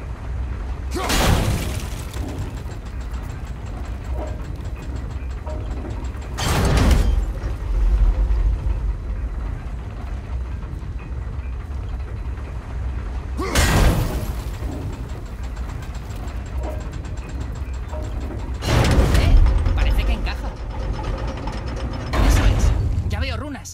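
An axe strikes stone with loud, ringing crashes, again and again.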